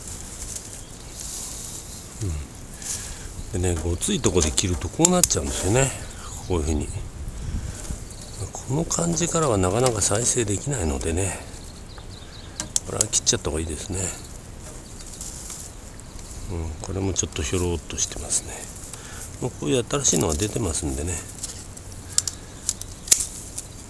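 Pruning shears snip through thin branches.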